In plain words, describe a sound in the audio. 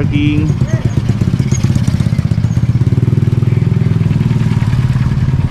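A motorcycle engine putters past.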